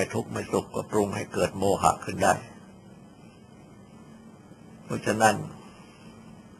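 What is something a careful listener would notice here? An elderly man speaks calmly, with pauses.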